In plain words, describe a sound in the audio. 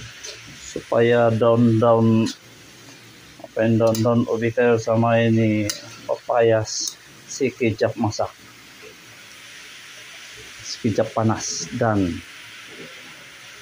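A metal spatula scrapes and stirs greens in a pan.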